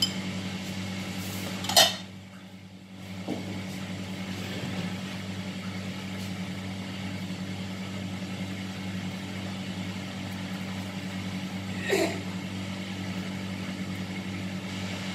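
An extractor fan hums steadily.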